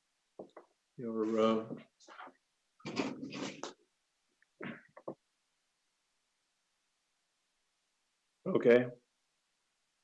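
A second man answers briefly over an online call.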